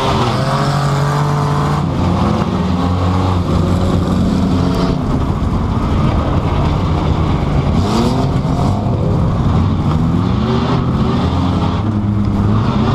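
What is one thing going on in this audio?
A car engine revs loudly up and down, heard from inside the car.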